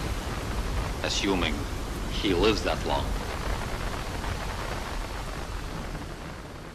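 Strong wind roars over a stormy sea.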